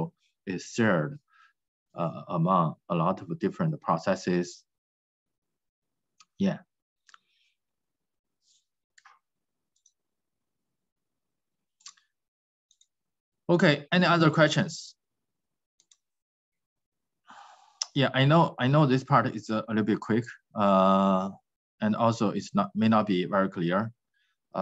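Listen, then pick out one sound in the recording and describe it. A man speaks calmly into a microphone, heard as if over an online call, with pauses.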